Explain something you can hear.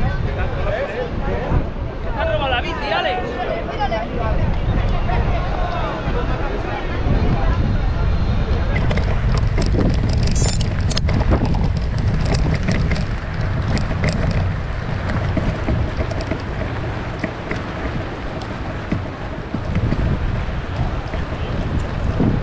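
Wind blows hard and rumbles against the microphone outdoors.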